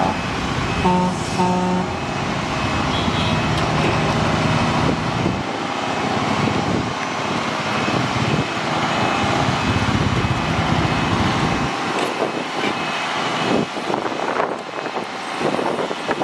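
Rocks and rubble slide out of a truck bed and crash down with a loud rattling roar.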